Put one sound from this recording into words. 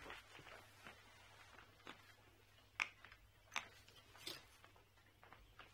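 Fingers click and scrape at a suitcase's zipper and lock.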